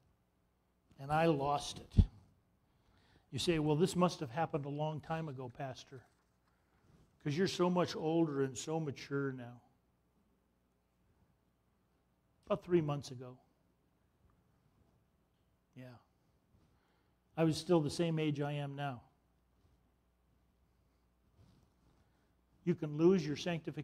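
A middle-aged man speaks calmly into a microphone, pausing between phrases.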